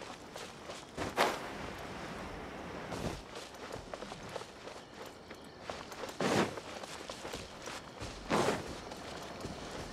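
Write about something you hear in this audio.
Wind gusts in whooshing bursts.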